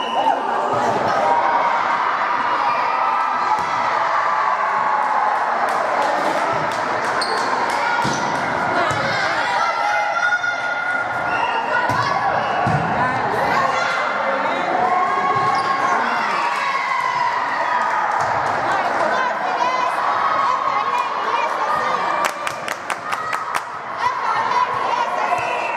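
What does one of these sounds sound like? Teenage girls call out to each other in a large echoing gym.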